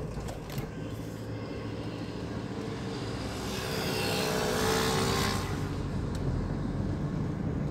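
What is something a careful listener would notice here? A motorcycle engine buzzes nearby.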